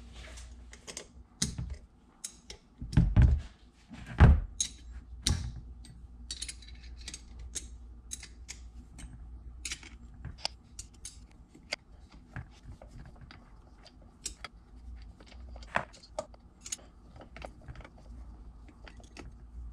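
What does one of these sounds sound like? Metal parts and a tool click and clink.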